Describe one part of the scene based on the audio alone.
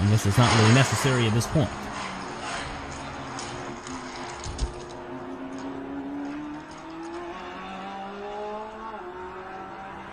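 A small toy car's plastic wheels roll and rattle along a track.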